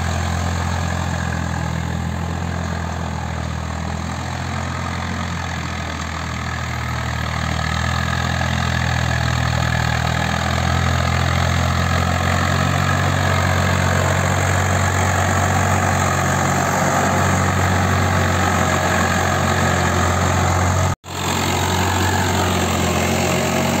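A tiller churns and scrapes through dry soil.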